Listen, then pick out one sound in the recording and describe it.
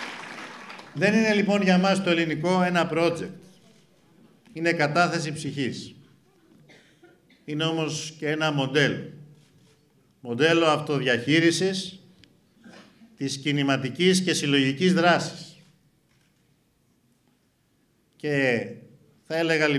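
A young man speaks into a microphone in measured phrases with pauses.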